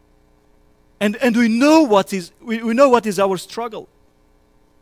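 A man speaks with emphasis through a microphone in a room with a slight echo.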